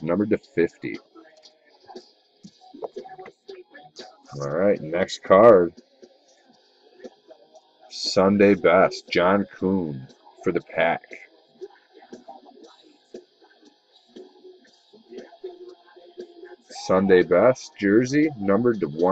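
Plastic card sleeves rustle and crinkle in hands.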